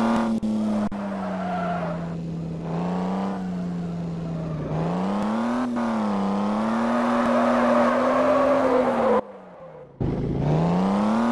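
A car engine revs up and down, rising and falling in pitch.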